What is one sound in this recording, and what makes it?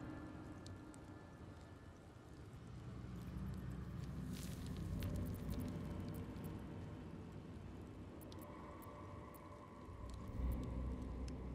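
A fire crackles and pops softly.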